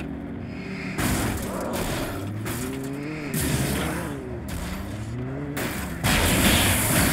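Heavy thuds and crashes hit a vehicle.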